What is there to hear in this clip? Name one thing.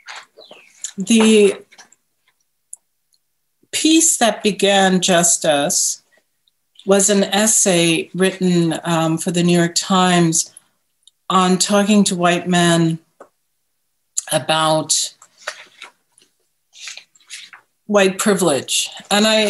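An older woman speaks calmly and thoughtfully, heard close through a microphone.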